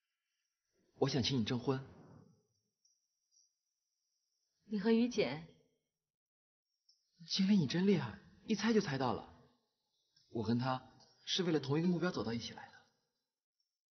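A young man speaks calmly and warmly, close by.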